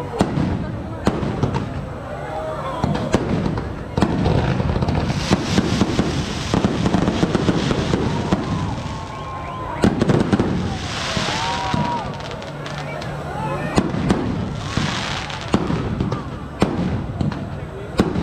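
Fireworks bang and crackle loudly outdoors.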